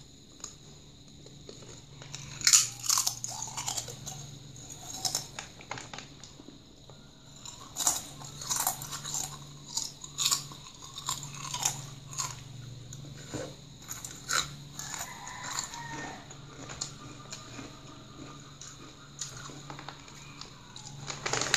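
A boy crunches potato chips close to the microphone.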